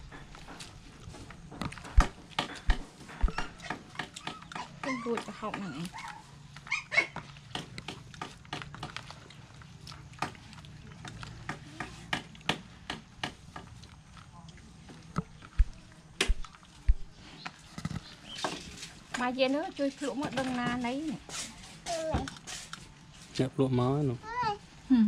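Hands squish and rustle through wet shredded vegetables in a plastic bowl.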